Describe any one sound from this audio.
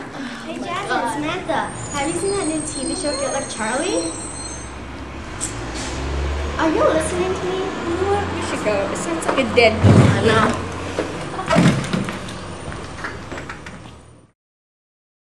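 Young girls talk and laugh nearby.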